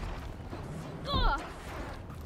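A young woman grunts with effort as she climbs.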